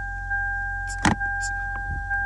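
A finger taps on plastic with a sharp click.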